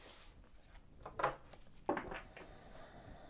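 A deck of cards is shuffled with quick riffling clicks.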